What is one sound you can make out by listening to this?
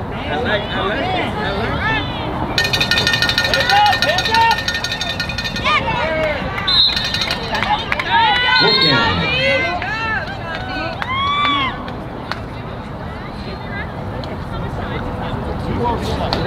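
Girls and young women shout and cheer across an open field.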